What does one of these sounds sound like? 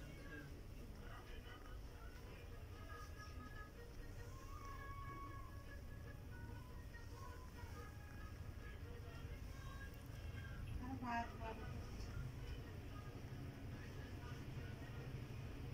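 A cat purrs softly and steadily up close.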